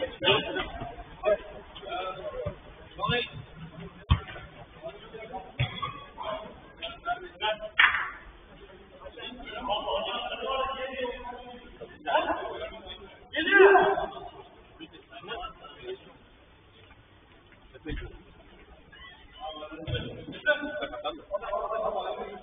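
Men shout to each other across an echoing indoor pitch.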